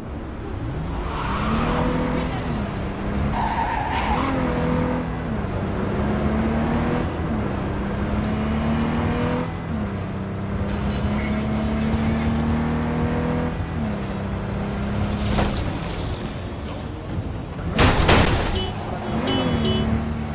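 A car engine revs and shifts gears as the car speeds along a street.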